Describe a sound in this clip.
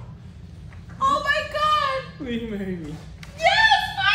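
A young woman gasps and exclaims with excitement.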